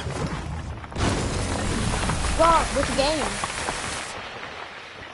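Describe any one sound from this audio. A loud energy blast roars and then cuts off.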